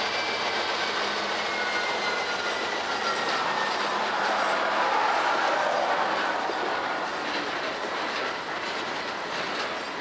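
A freight train rolls across a bridge, its steel wheels clattering on the rails.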